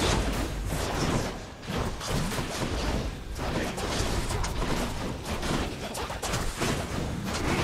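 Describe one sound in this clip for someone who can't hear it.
Video game combat effects whoosh and clash with magic blasts.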